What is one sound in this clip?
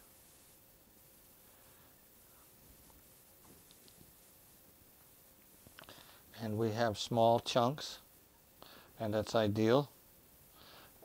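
A wire whisk clinks softly against a bowl as it stirs a batter.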